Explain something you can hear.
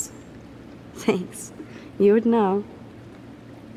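A second young woman answers softly.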